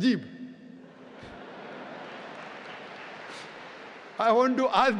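A large audience laughs and murmurs.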